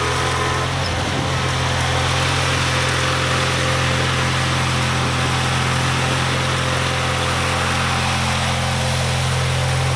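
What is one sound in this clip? Wet snow scrapes and rushes from a snow thrower.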